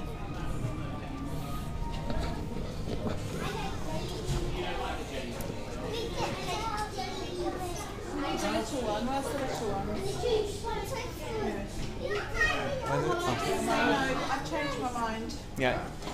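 Several other adults chatter in the background.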